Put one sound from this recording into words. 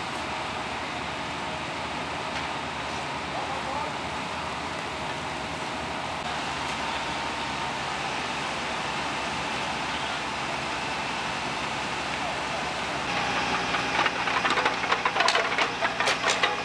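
A roof fire roars and crackles.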